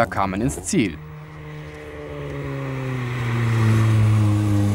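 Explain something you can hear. A race car engine roars as the car approaches at speed.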